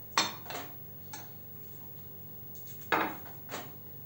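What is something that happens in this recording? A ceramic plate clinks down onto a hard counter.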